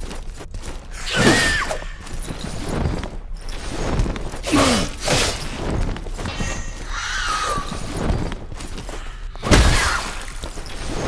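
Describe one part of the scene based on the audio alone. A sword strikes and clashes in a fight.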